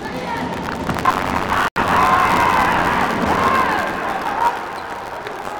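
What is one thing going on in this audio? Young men shout and cheer loudly.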